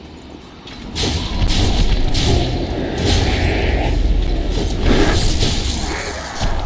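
A large beast roars and growls.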